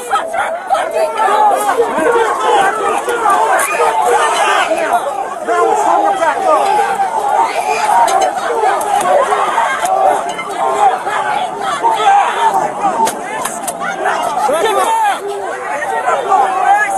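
A crowd of protesters shouts and chants loudly outdoors, close by.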